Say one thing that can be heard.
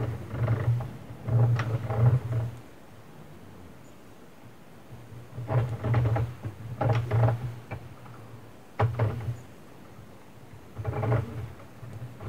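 A plastic knitting loom clicks and rattles as its crank is turned.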